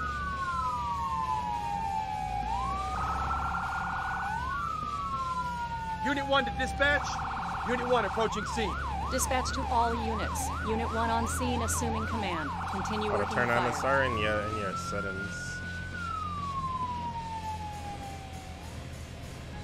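A fire engine siren wails, shifting between slow rising-falling and fast warbling tones.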